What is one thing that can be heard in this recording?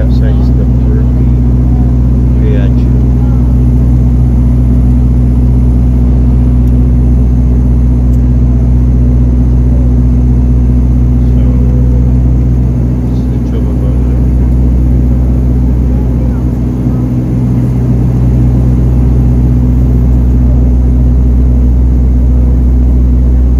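An aircraft engine drones steadily and loudly from inside the cabin.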